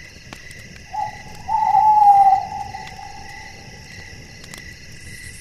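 An owl hoots with a long, low, wavering call.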